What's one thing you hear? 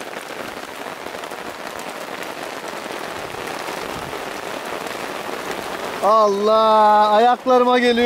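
Rain patters on a tarp overhead.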